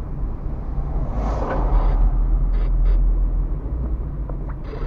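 A heavy truck roars past close by.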